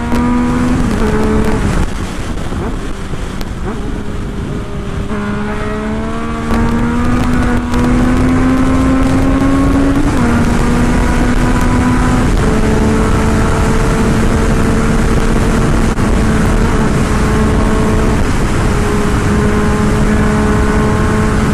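A motorcycle engine hums and revs up and down between gear changes.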